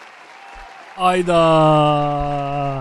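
A man speaks loudly, close to a microphone.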